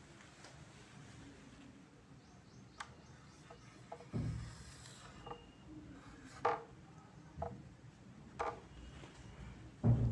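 A marker squeaks and taps on a whiteboard.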